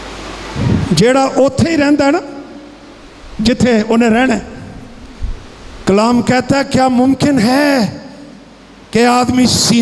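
An elderly man speaks with animation into a microphone, heard through a loudspeaker in an echoing hall.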